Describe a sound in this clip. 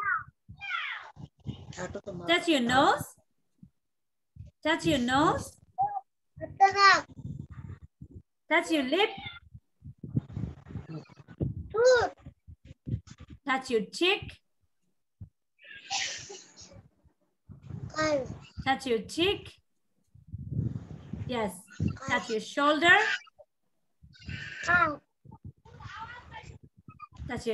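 Young children speak and sing along over an online call.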